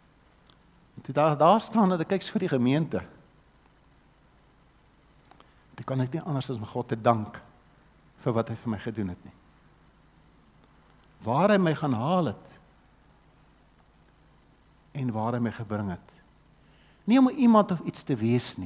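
An elderly man speaks with animation through a microphone, in short bursts with pauses.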